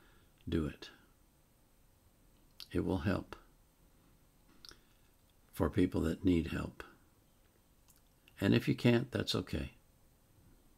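An elderly man speaks calmly, close to the microphone, in short bursts.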